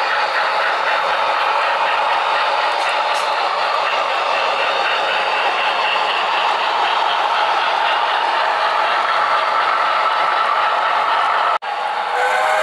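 Model trains rattle and hum steadily along the tracks.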